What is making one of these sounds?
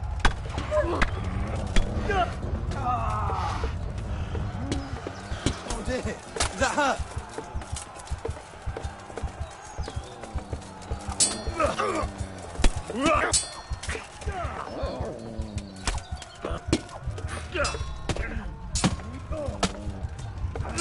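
Swords clash and ring with metallic clangs.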